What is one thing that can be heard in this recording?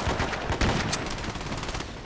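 A pistol's metal parts click during a reload.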